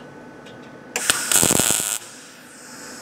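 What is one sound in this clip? A welding torch crackles and sizzles briefly against metal.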